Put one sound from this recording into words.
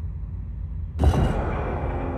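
A heavy switch clicks into place.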